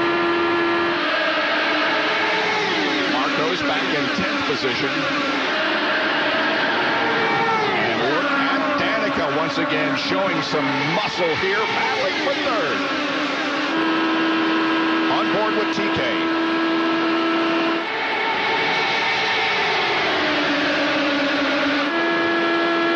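A pack of race cars roars past with rising and falling engine whines.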